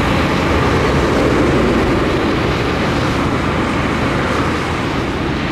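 A heavy truck engine rumbles as the truck drives slowly closer.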